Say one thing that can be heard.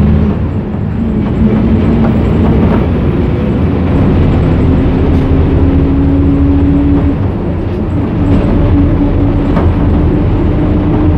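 A train rumbles steadily while moving.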